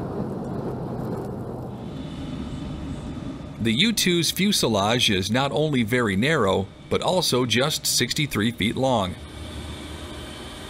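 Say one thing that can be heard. A jet engine rumbles steadily as an aircraft rolls along a runway.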